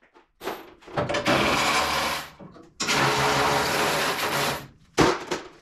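An air tool whirs in short bursts.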